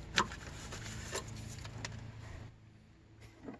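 Plastic parts and rubber hoses click and rustle under hands.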